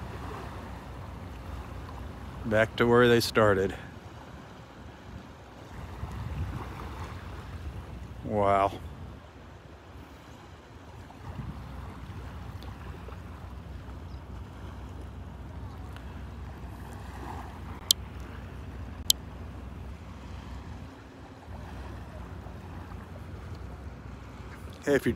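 Water laps gently at the shore.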